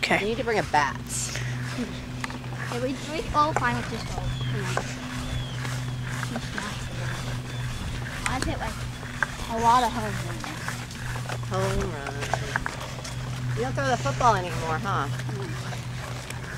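A young boy talks nearby.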